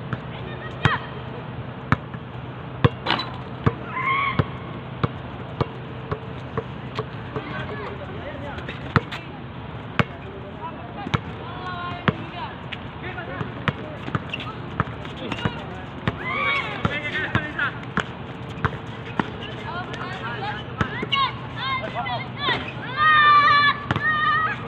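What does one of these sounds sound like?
A basketball bounces repeatedly on an outdoor court.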